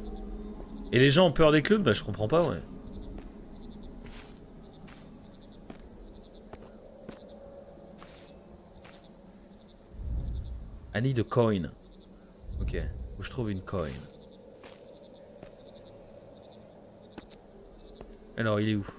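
A young man talks with animation close to a microphone.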